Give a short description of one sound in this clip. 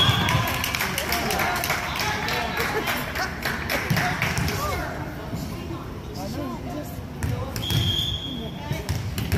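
Young girls chatter and call out in a large echoing gym.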